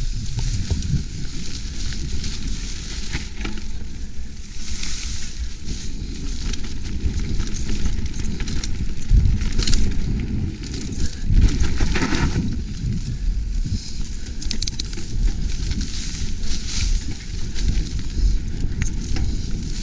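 Wind rumbles past a moving rider.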